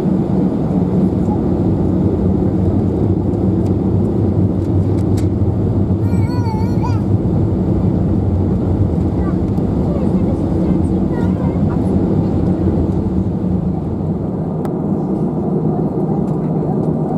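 Jet engines hum and roar steadily inside an airliner cabin.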